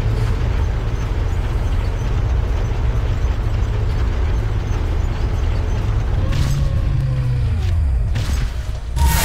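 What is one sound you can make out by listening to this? A heavy tank engine rumbles and roars steadily.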